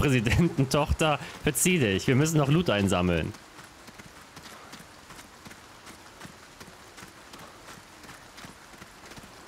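Footsteps tread softly on stone and wooden steps.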